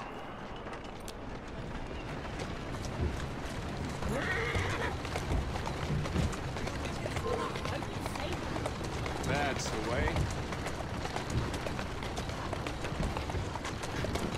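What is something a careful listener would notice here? Horse hooves clop steadily on cobblestones.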